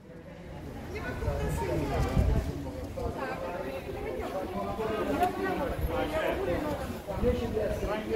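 Two men talk with animation close by.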